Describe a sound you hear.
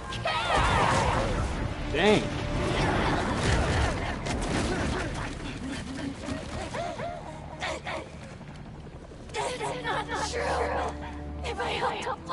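A young man talks with animation through a headset microphone.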